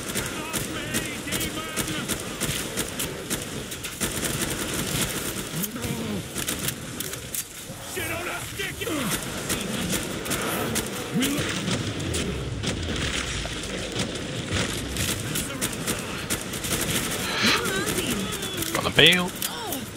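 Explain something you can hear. Rapid gunfire rattles and cracks.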